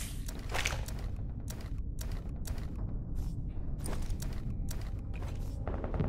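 Short clicks sound as game inventory items are moved.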